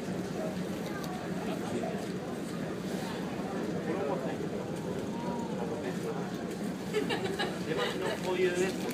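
A ship's engine hums steadily.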